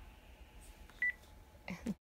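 A phone keypad beeps as buttons are pressed.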